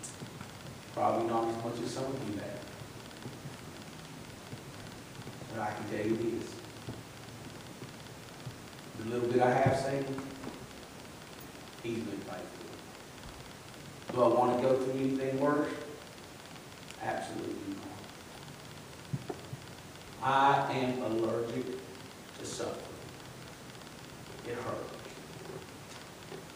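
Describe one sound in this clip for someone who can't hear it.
A middle-aged man speaks slowly through a microphone, with pauses between phrases, in an echoing room.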